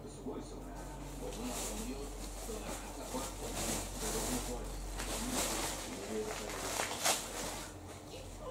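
A cat rustles and scrapes softly against a mat as it rolls about.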